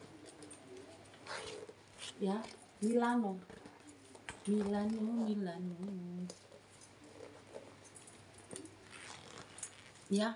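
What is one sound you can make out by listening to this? A leather bag rustles and creaks as it is handled.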